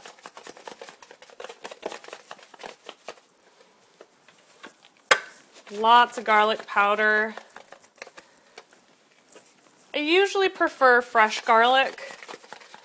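Spices rattle in a plastic shaker as they are shaken out.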